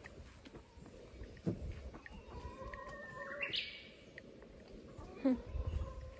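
Hens cluck softly nearby.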